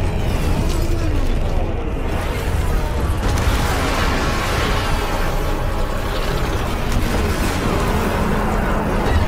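Engines roar loudly as flying craft sweep low overhead.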